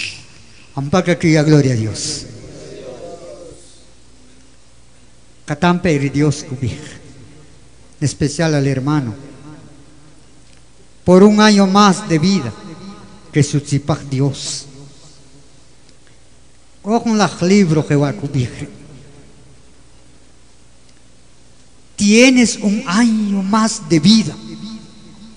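A man speaks loudly and with feeling in short bursts, with pauses between them.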